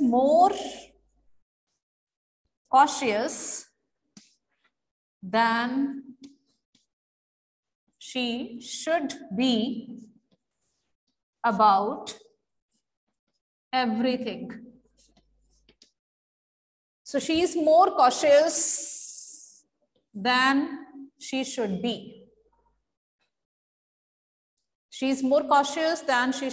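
A woman speaks slowly and clearly in short phrases, as if dictating.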